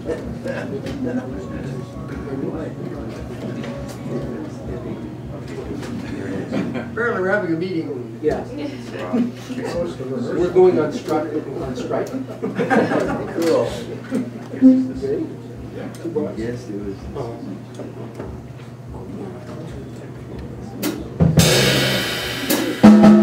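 Drums keep a soft beat with cymbals.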